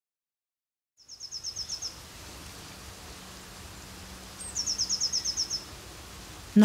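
A small bird trills in short bursts.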